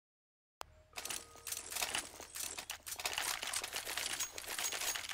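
Footsteps clatter on cobblestones.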